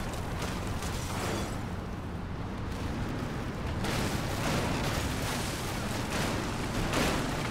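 A jeep engine rumbles steadily as it drives.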